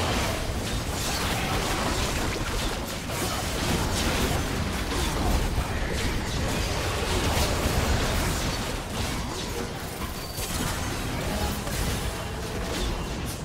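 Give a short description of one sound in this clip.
Video game spell effects whoosh, crackle and clash in rapid bursts.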